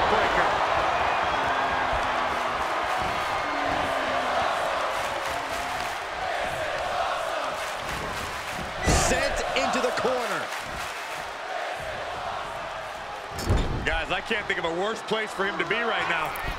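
A large crowd cheers and roars steadily in a big arena.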